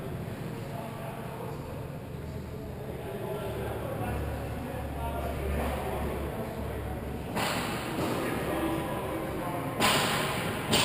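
Ice skates scrape and glide across the ice.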